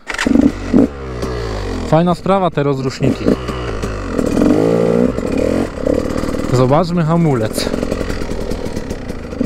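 A dirt bike engine revs up and down loudly, close by.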